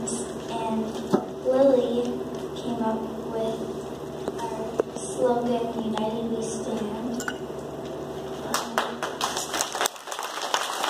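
A young girl speaks into a microphone through a loudspeaker.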